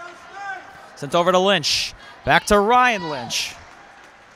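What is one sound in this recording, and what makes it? A man in the crowd shouts loudly nearby.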